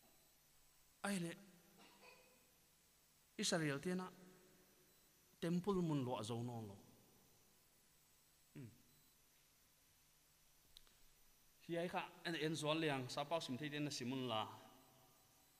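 A man speaks with animation through a microphone in an echoing room, in short bursts with pauses.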